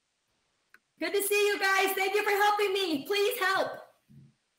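A woman's voice sings out over an online call.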